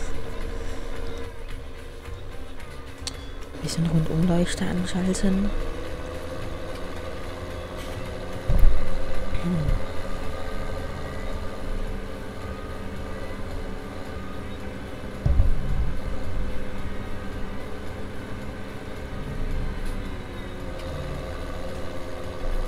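A tractor engine rumbles steadily as it drives along.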